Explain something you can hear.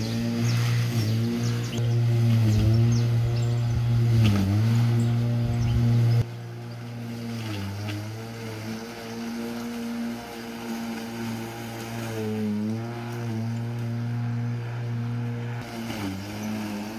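A lawn mower engine drones steadily, its pitch dipping now and then as it cuts grass.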